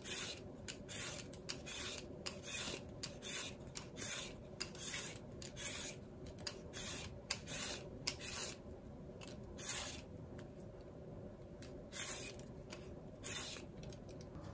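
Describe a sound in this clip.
A peeler scrapes quickly along a carrot.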